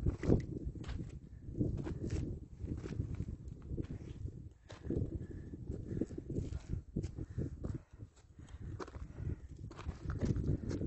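Boots crunch on loose gravel and rock.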